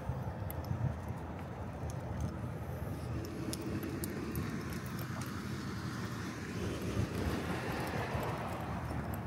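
A small dog's claws click and tap on asphalt close by.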